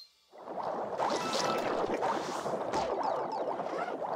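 A bright game jingle plays for a collected prize.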